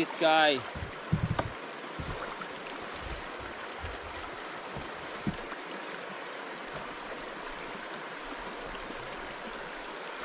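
River water flows past.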